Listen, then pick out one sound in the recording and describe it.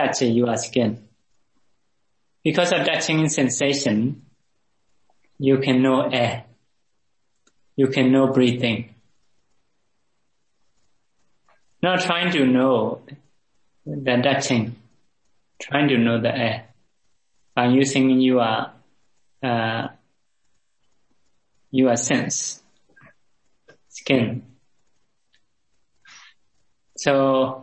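An older man speaks calmly in short phrases with pauses, heard over an online call.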